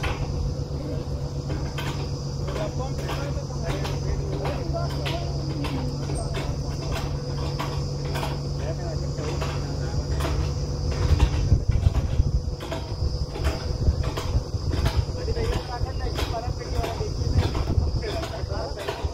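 A drilling rig's engine rumbles steadily close by.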